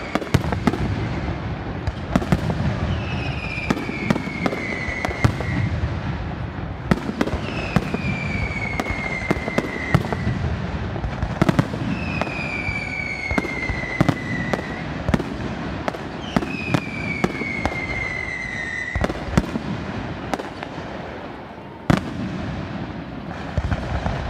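Fireworks bang and crackle loudly overhead.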